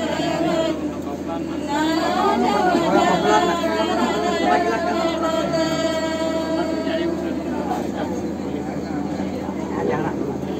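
A group of women talk and call out together close by.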